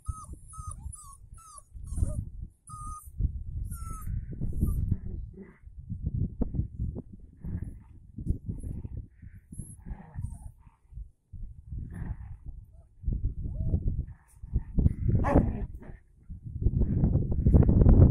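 Puppies scamper and tussle on grass.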